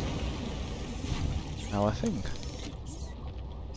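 Water bubbles and gurgles close by.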